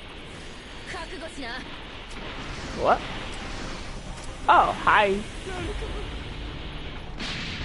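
An energy blast whooshes and roars in bursts.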